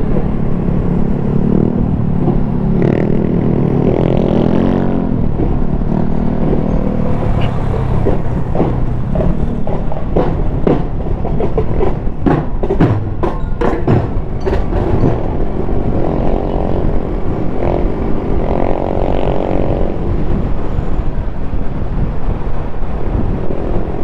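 Wind rushes past, loud and low.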